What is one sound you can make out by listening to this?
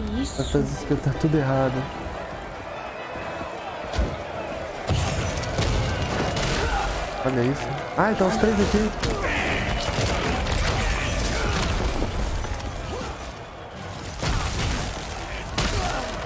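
Fiery spells crackle and explode in a game.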